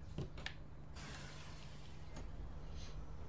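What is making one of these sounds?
A window slides open with a scrape.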